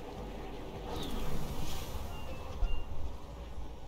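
A glider opens with a loud whoosh.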